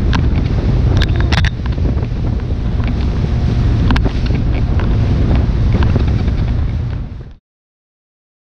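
Wind roars across a microphone on a fast-moving boat out on the open sea.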